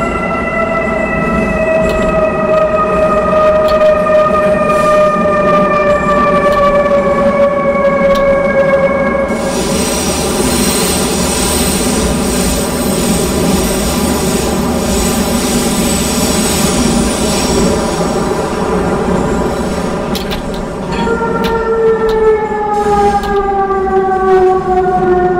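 A train's electric motor whines, its pitch slowly falling.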